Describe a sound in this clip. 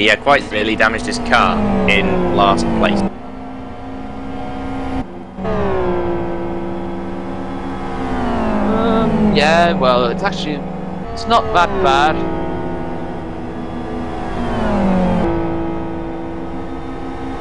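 A racing car engine roars and shifts through the gears.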